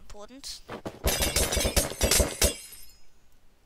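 A glass bottle shatters.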